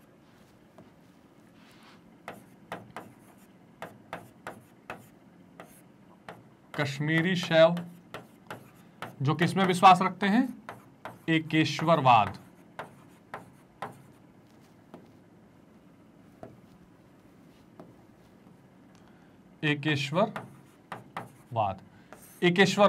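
A marker taps and squeaks against a whiteboard while writing.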